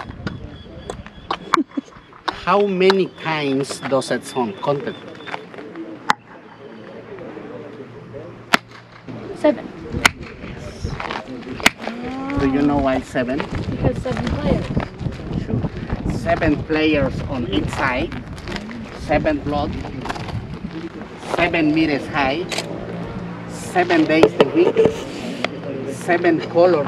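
A young woman talks and answers nearby.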